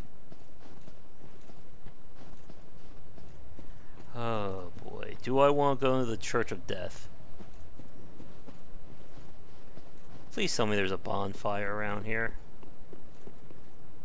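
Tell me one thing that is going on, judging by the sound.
Armoured footsteps run over snow and stone.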